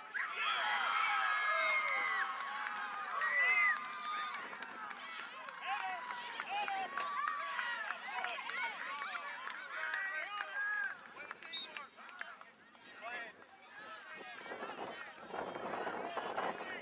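Young players and spectators shout and call out across an open field outdoors, heard from a distance.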